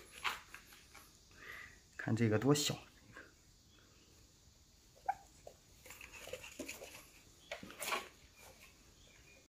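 Small puppies whimper and squeak softly.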